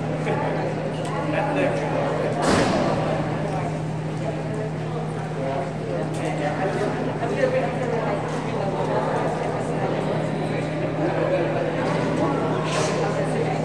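Men and women chat quietly in a large echoing hall.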